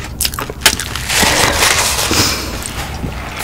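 A paper wrapper crinkles close to a microphone.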